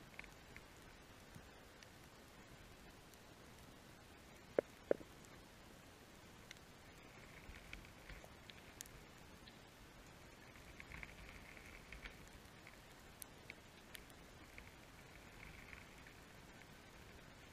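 Soft clicks and crackles sound underwater around a reef.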